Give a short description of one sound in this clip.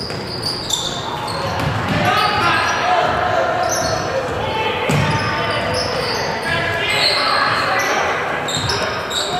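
Spectators cheer and call out in an echoing gym.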